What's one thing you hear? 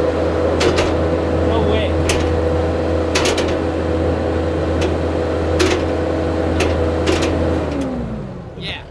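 A loader's diesel engine hums steadily up close, then winds down.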